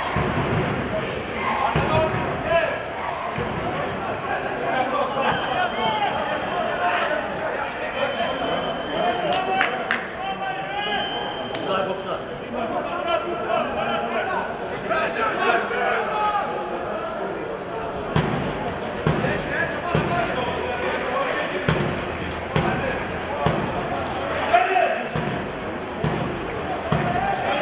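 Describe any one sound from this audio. Spectators nearby talk and call out.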